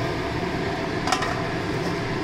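A metal lid clinks down onto a pan.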